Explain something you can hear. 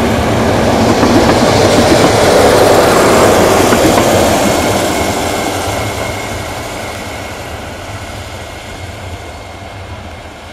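A train rumbles and clatters along the tracks close by, then fades into the distance.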